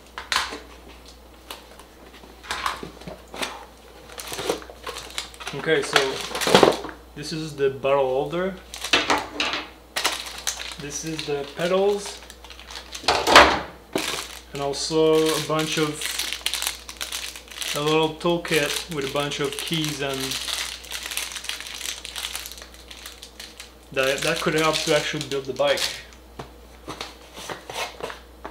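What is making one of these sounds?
Cardboard and plastic packaging rustle and crinkle in hands.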